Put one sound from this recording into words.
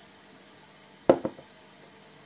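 A glass jar knocks against a hard surface.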